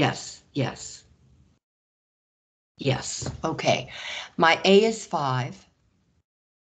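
A man explains calmly through a microphone.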